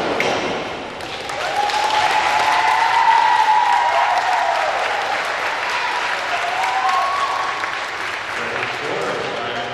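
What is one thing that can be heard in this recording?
Young women cheer and shout loudly in an echoing hall.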